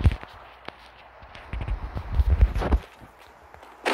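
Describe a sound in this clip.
A vehicle engine hums as it drives.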